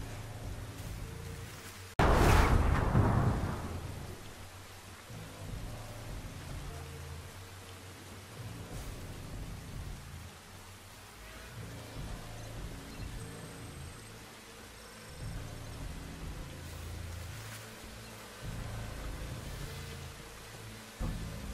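Footsteps rustle through dense leafy plants.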